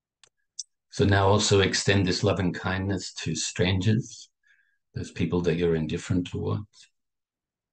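A middle-aged man speaks calmly and warmly over an online call.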